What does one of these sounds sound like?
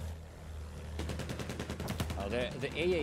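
A plane's machine guns fire in rapid bursts.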